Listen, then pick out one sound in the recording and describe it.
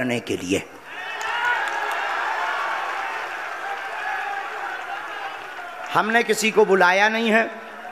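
A young man speaks loudly into a microphone.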